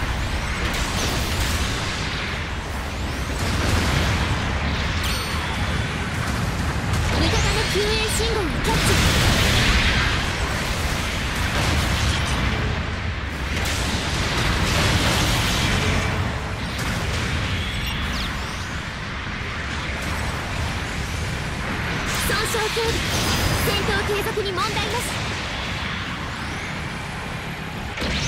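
Beam weapons fire in rapid bursts.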